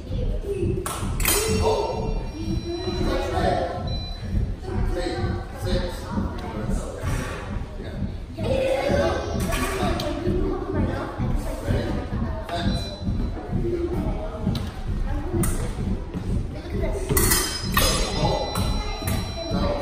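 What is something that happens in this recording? Fencing blades clash and scrape.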